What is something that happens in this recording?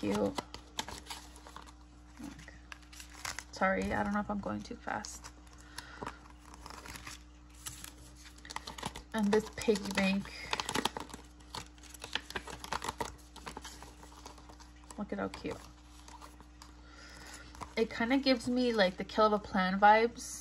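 Paper sheets rustle and crinkle as they are handled.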